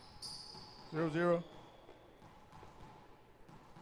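A rubber ball bounces on a wooden floor in an echoing court.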